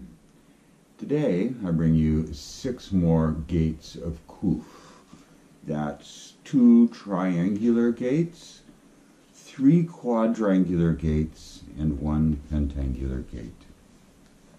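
An elderly man speaks calmly and steadily, close to a microphone.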